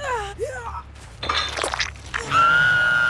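A young man screams in pain.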